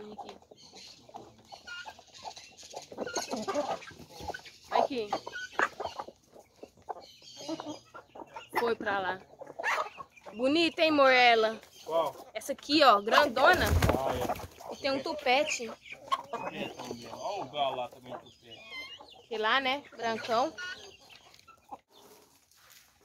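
Chickens cluck and squawk close by, outdoors.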